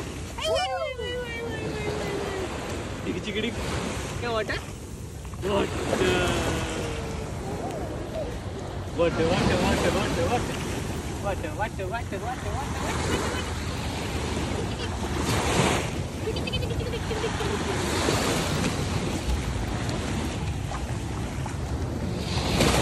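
Small waves wash up and hiss over the sand.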